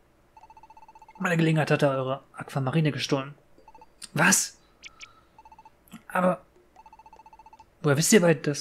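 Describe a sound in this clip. Short electronic beeps tick rapidly as dialogue text scrolls up.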